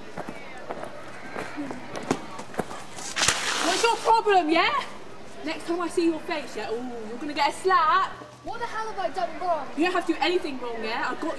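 Another young woman talks excitedly outdoors.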